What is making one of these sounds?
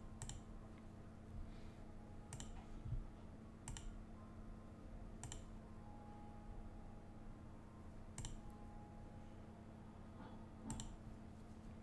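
Short bright game chimes sound now and then.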